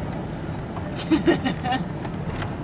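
A car door thumps shut nearby.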